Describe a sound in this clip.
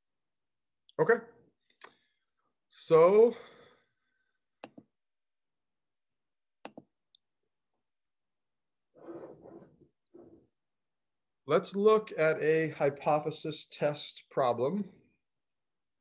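A man speaks calmly into a microphone, in short bursts with pauses.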